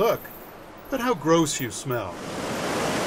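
A small bat squeaks in high chirps.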